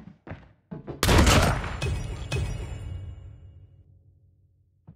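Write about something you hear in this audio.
A rifle fires a single loud, booming shot that rings out and fades.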